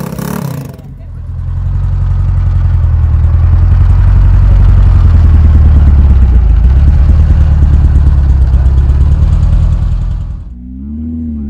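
An old car engine rumbles steadily at idle close by.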